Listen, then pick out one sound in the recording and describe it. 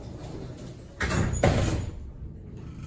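An elevator door slides shut with a thud.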